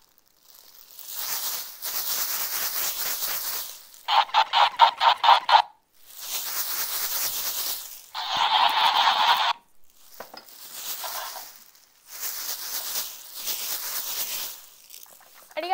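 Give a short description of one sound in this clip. A plastic pom-pom rustles as it is shaken.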